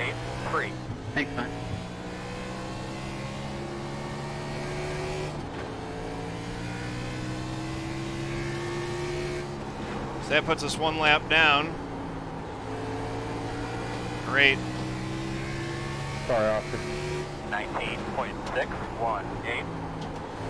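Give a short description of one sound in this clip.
A racing car engine drones steadily and shifts in pitch.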